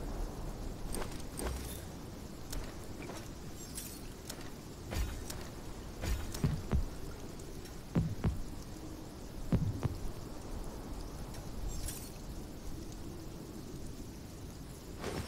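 Short clicks sound as items are moved around.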